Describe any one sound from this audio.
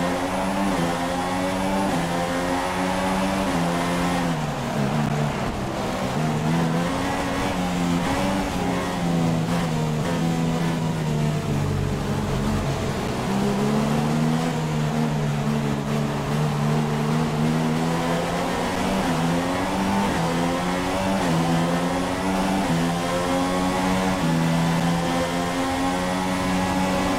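A racing car engine screams loudly, rising and falling in pitch as it shifts gears.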